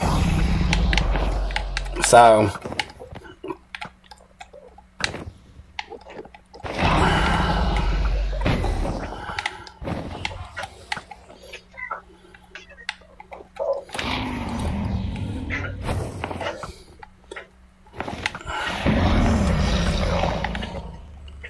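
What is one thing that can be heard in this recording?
A dragon roars loudly.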